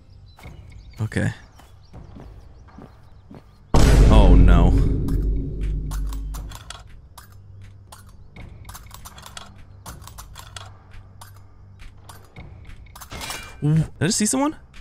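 A young man talks and exclaims through a headset microphone.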